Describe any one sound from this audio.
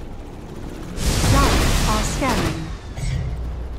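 Magic spell effects whoosh and crackle in a video game battle.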